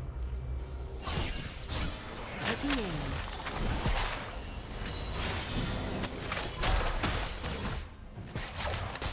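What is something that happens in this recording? Video game spell effects whoosh and crackle in quick bursts.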